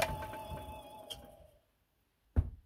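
A lathe motor whirs and winds down to a stop.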